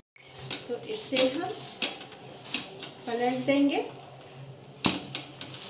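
A spatula scrapes and taps against a hot pan.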